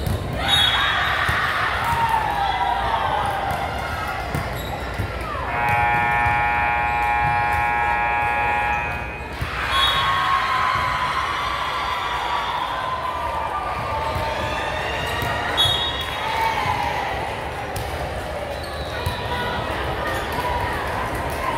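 Young women call out to each other in an echoing hall.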